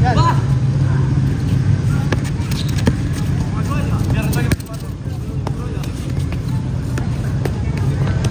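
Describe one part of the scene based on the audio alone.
A futsal ball is kicked on a hard court outdoors.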